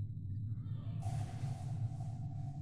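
A plate clatters as it is swept off a wooden table.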